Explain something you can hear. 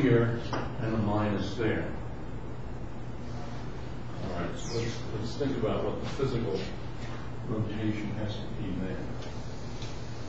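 An elderly man lectures calmly, heard from across a room.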